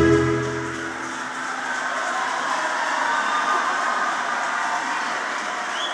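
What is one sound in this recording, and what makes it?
A large choir sings in an echoing hall.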